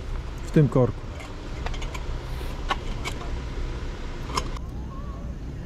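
Metal cookware clinks and clatters close by.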